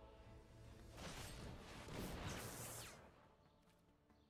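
A magical whoosh sweeps past.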